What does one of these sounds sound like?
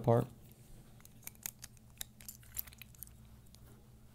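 Small plastic parts click together.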